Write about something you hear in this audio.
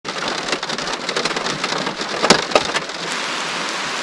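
Raindrops patter and tap on a car roof.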